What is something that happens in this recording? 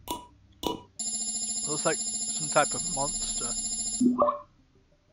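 An electronic scanning hum buzzes steadily, then cuts off.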